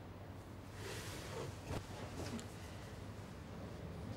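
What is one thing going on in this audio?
Gloved hands handle small items in a tray with soft clicks.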